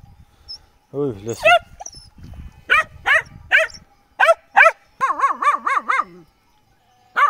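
A puppy whines and yelps close by.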